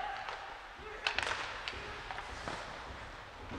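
A hockey stick sharply smacks a puck.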